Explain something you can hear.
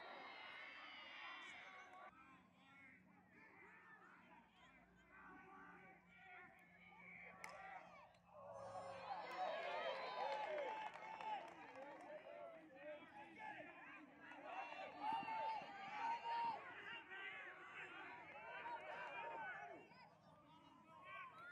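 Players shout across an outdoor field.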